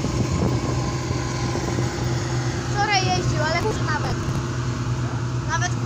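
A diesel farm tractor engine idles.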